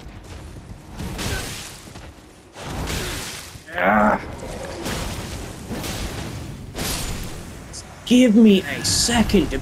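Blades strike with heavy, ringing impacts.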